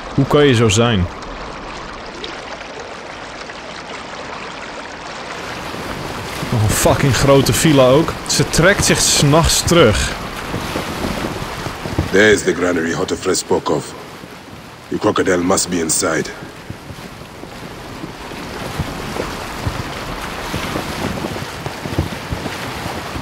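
Water splashes and rushes steadily against a moving boat's hull.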